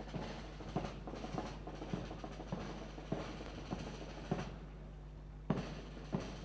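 Boots stamp in a steady marching rhythm on hard ground outdoors.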